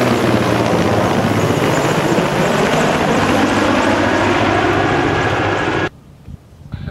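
A helicopter's rotor thumps loudly overhead.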